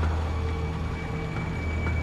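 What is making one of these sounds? Footsteps thud on metal stairs.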